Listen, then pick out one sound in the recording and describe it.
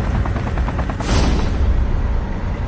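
A rocket fires with a sudden rushing whoosh.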